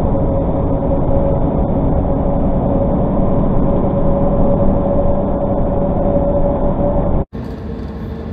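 Tyres roar on a road.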